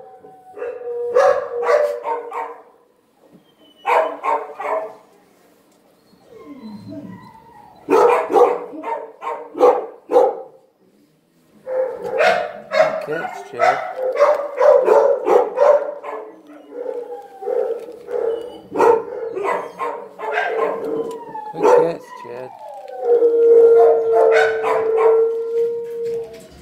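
A dog whines and howls close by.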